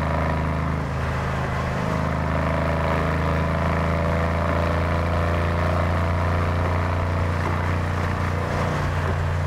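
A V8 engine drones steadily, heard from inside a car cruising through a tunnel.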